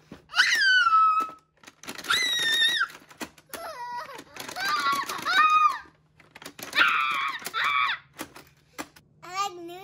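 Plastic toy fighting robots click and clack.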